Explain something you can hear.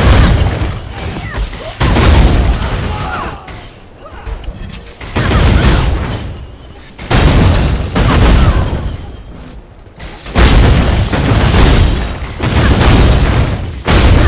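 Fiery explosions boom and crackle in bursts.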